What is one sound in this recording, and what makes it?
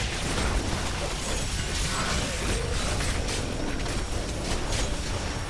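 Electric lightning crackles and zaps.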